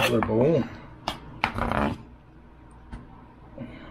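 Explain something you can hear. A knife taps and scrapes on a cutting board.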